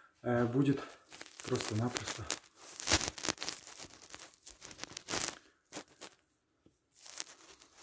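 A glove rubs and rustles against the microphone.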